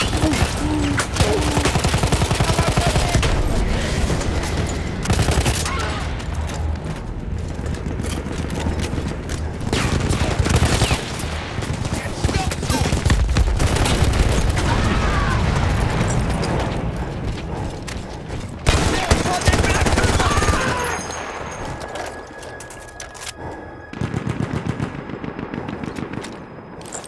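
A machine gun fires rapid bursts nearby.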